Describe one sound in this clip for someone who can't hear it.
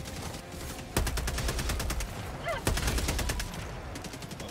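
Rapid gunfire rattles.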